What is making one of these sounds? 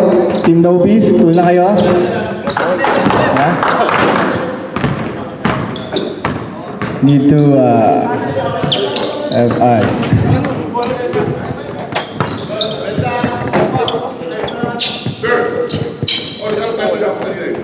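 Young men shout and call out during a game in an echoing gym.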